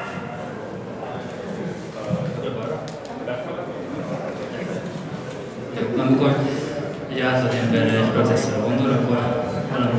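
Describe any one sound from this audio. A man speaks into a microphone over loudspeakers in a reverberant hall.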